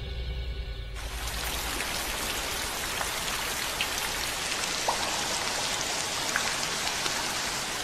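Steady rain patters down outdoors.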